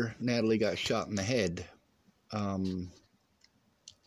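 A man speaks close to the microphone in a low, drawn-out voice.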